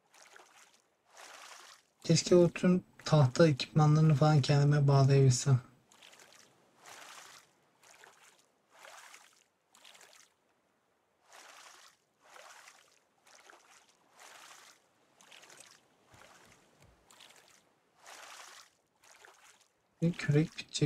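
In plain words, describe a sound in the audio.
A paddle splashes through water in a steady rhythm.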